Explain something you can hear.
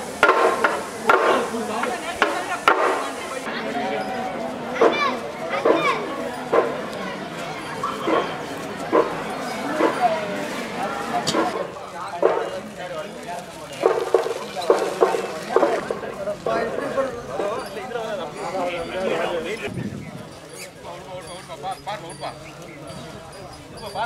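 A crowd of men shout and chant together outdoors.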